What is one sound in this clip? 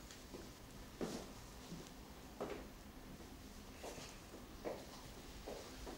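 A woman's footsteps tap across a hard floor.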